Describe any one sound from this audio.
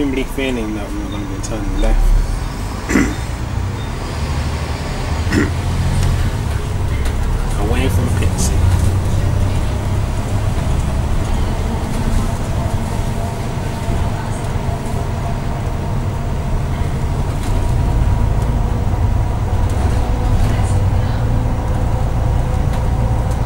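Loose fittings inside a bus rattle and knock now and then.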